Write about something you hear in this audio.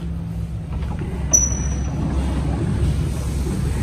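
A sliding door clicks and rolls open.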